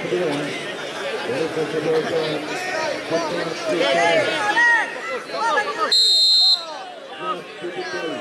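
A large outdoor crowd of men chatters and calls out loudly.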